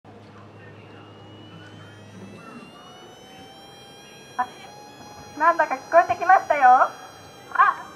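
A young woman speaks calmly through a microphone and loudspeaker, outdoors.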